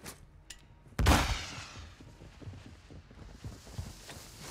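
A grenade explodes nearby and echoes down a hall.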